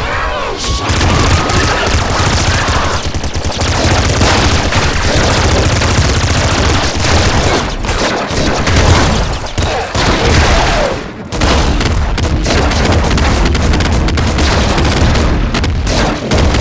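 Game guns fire rapidly with zapping laser blasts.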